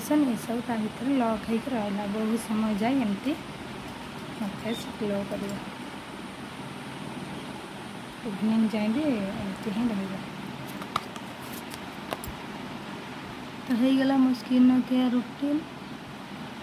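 A woman speaks calmly and close by, with pauses.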